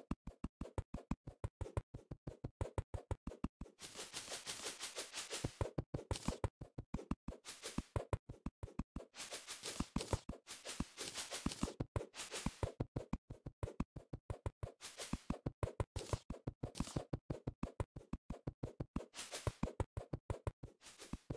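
A pickaxe chips rapidly at blocks with quick, even tapping.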